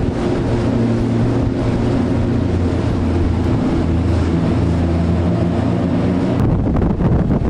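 A boat engine drones steadily nearby.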